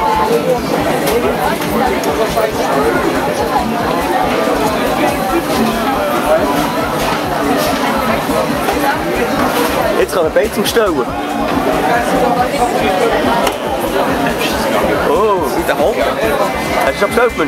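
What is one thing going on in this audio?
A crowd of people chatter nearby.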